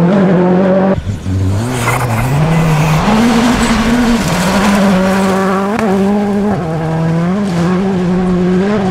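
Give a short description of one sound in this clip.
Gravel sprays and crunches under a car's tyres.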